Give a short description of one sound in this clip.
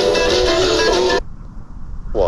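Music plays from a small radio loudspeaker, then cuts off.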